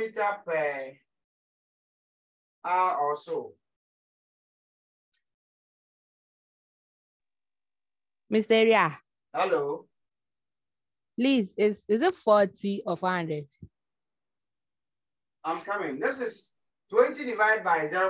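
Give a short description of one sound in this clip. A man speaks calmly in short phrases with pauses, as if explaining.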